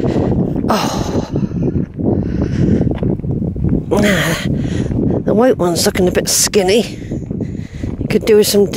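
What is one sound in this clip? Footsteps crunch on a dirt track.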